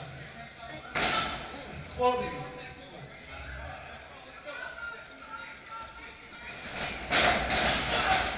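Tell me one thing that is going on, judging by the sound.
A wrestler lands hard on a ring mat with a loud thud.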